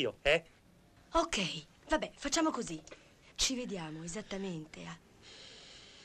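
A young woman speaks with animation into a phone.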